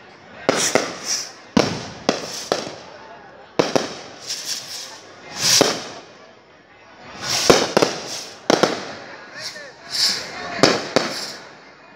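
Fireworks bang and crackle nearby, one burst after another.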